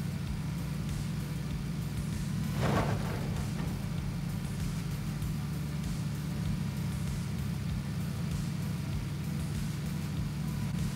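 Tyres roll and bump over rough ground.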